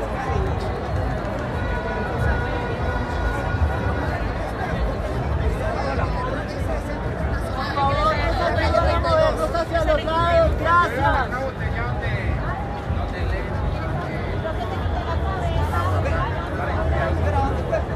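A crowd chatters and murmurs outdoors, close by all around.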